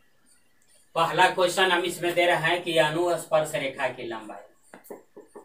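A middle-aged man speaks clearly in a lecturing tone, close by.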